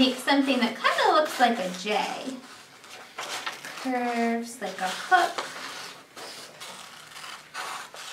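Paper rustles as it is folded.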